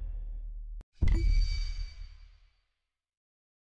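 A game's reward sound swells with a bright shimmer and fades away.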